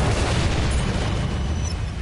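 A shell explodes with a loud blast.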